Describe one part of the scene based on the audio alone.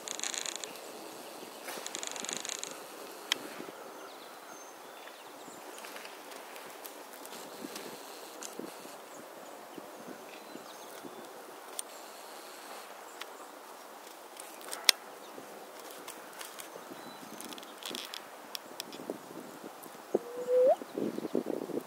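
Small birds chirp softly outdoors.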